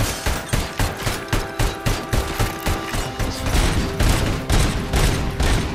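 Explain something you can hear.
A pistol fires repeated sharp gunshots.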